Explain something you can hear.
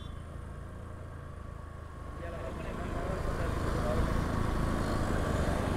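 A motorcycle engine hums steadily close by while riding.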